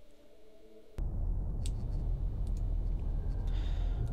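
A spaceship's warp drive rumbles low.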